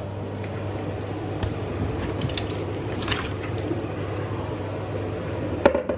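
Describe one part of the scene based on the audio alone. Potato slices splash and plop into boiling water.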